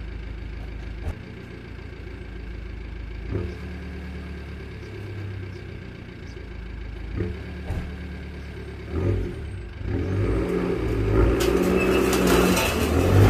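An old car engine rumbles and revs up loudly near the end.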